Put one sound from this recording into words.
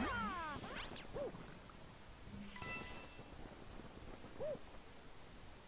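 Playful cartoon sound effects chirp, whoosh and boing.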